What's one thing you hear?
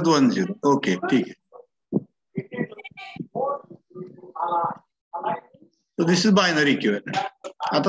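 A man explains calmly through a microphone, as on an online call.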